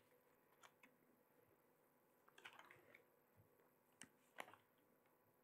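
Paper rustles and crinkles close to a microphone.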